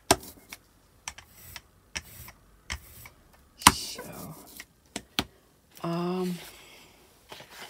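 A rubber roller rolls back and forth over sticky paint with a soft, tacky crackle.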